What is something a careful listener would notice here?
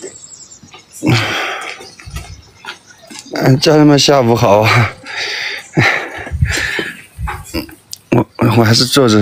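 A young man talks with animation close to a phone microphone.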